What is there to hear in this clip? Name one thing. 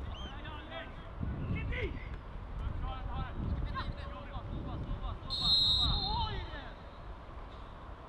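Young men shout to each other in the distance across an open field.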